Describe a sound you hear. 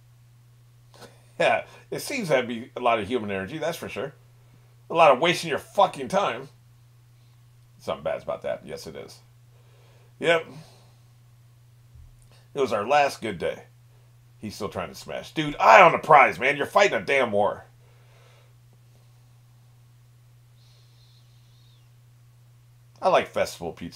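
An older man talks calmly close to a microphone, in bursts with pauses.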